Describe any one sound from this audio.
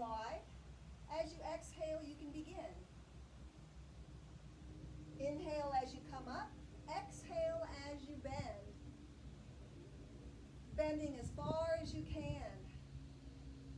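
A woman speaks calmly and clearly nearby, giving instructions.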